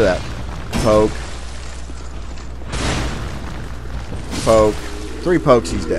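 Fire bursts with a whoosh.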